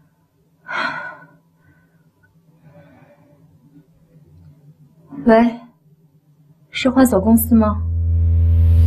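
A young woman speaks briefly into a phone, in short calm phrases.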